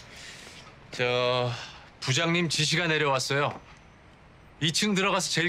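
A young man speaks calmly and firmly close by.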